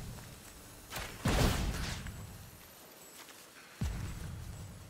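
A game plays a whooshing chime as a card is played.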